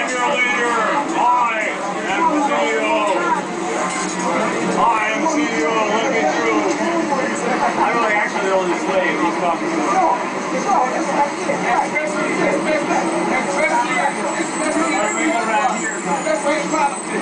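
A crowd of men and women talk over one another nearby, outdoors.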